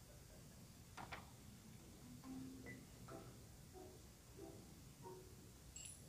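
Short, soft electronic blips sound now and then.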